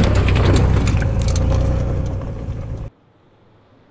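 Wind roars loudly past a moving vehicle.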